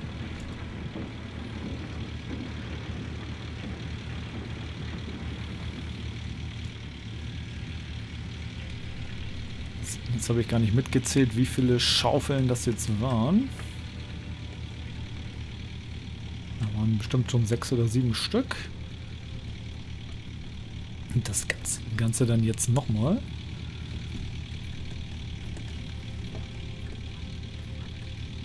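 An excavator engine drones steadily.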